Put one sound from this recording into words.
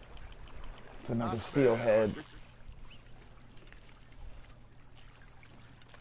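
Water laps gently against a wooden boat.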